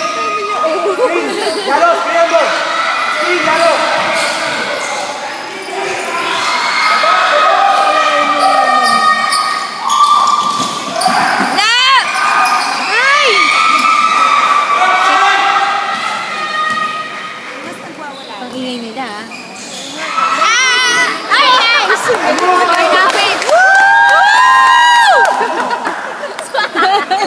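A crowd of spectators shouts and cheers, echoing in a large hall.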